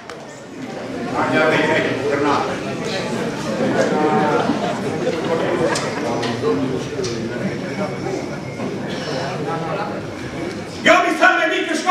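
A group of men sing together loudly in an echoing hall.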